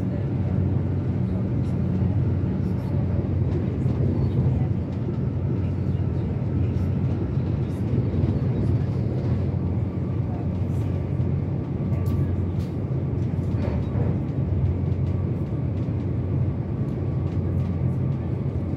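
A train rumbles steadily along the rails, heard from inside a carriage.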